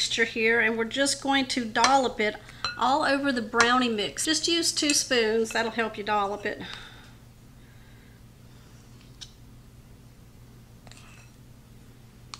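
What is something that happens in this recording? A spoon scrapes against a glass bowl.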